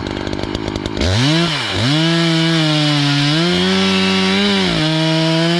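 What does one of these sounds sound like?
A chainsaw revs up loudly and whines as it cuts into wood.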